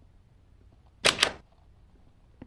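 A door bangs open loudly.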